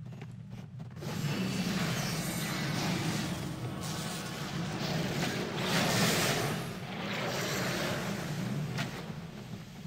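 Magic spells crackle and whoosh in battle.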